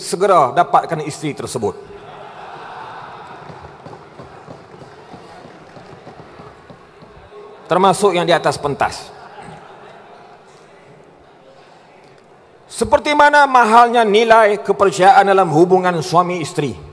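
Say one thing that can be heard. A man speaks forcefully into a microphone, with pauses between phrases.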